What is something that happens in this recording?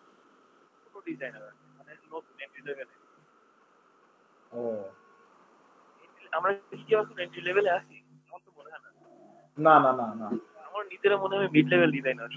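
Young men talk by turns over an online call.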